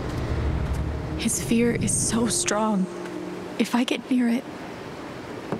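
A young woman speaks quietly and anxiously.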